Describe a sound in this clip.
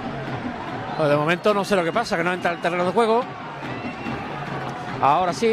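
A man in the crowd shouts loudly and angrily.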